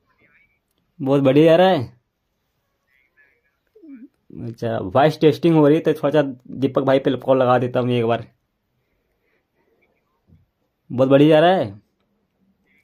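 A smartwatch rings with an incoming call tune.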